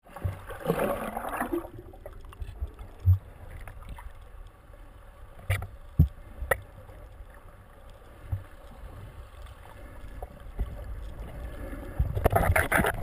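Water rumbles and gurgles, muffled as if heard underwater.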